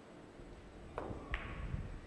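A cue sharply strikes a billiard ball.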